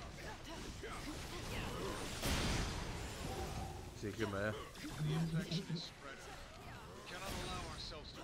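Energy blasts whoosh and crackle as fighters clash.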